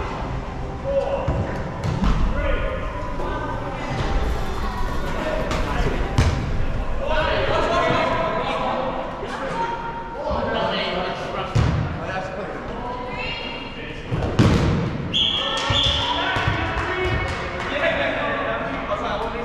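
Adult men and women shout and call out to each other with animation in an echoing hall.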